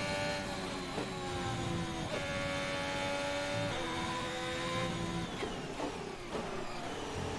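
A racing car's gears shift with sharp clicks.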